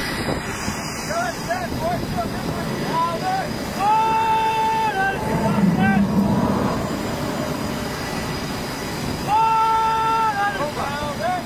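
Several men sing loudly into microphones.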